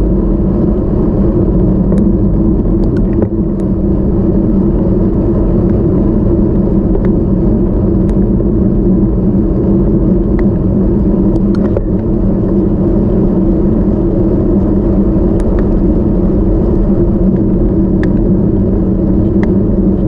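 Bicycle tyres hum on smooth asphalt.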